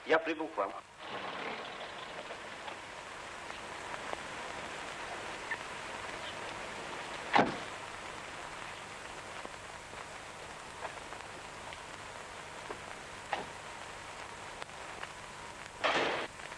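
A car engine idles with a low hum.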